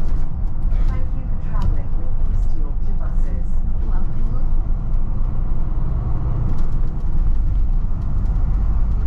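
A bus engine rumbles steadily as the bus drives along.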